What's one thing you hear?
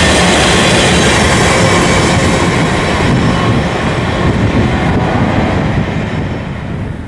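Freight train hopper cars clatter and rumble over the rails.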